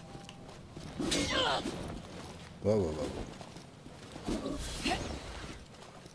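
Weapons clash and strike in quick blows.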